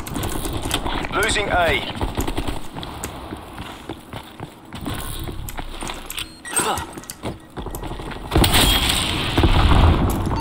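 Footsteps crunch quickly on dirt and gravel.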